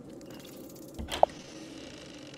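A door latch clicks as a door opens.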